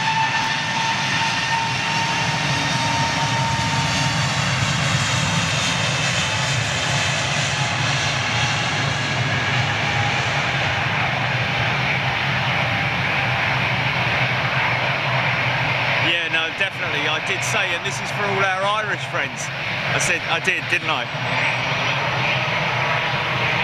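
Jet engines roar and whine steadily in the distance, outdoors.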